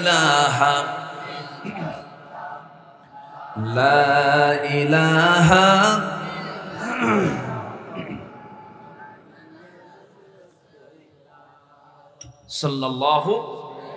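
A man chants and preaches with fervour in a singing voice through a loudspeaker microphone.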